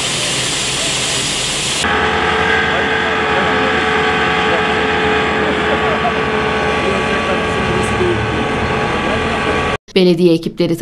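A paving machine's engine rumbles steadily close by.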